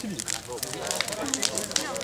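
A large fire crackles and pops.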